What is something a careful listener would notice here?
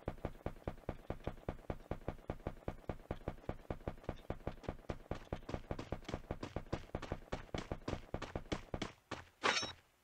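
Quick footsteps thud on grass.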